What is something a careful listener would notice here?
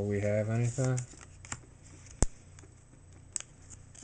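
Trading cards slide and shuffle against each other.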